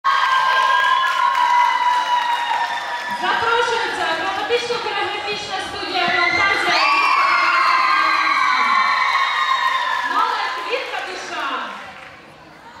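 Music plays loudly through loudspeakers in a large hall.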